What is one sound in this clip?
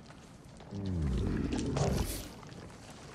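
A large animal lets out a deep, drawn-out low.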